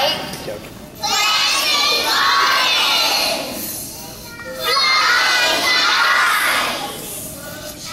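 A large group of children shouts together loudly.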